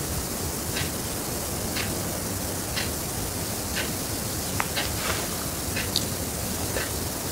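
Footsteps rustle through tall grass at a slow, even pace.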